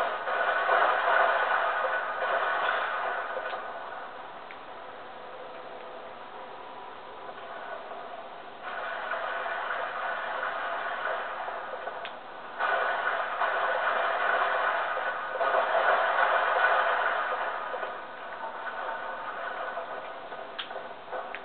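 Sounds of a video game play from a television speaker.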